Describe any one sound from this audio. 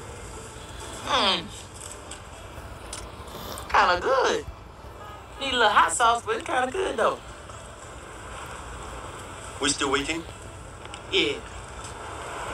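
A man speaks with animation, heard through a small loudspeaker.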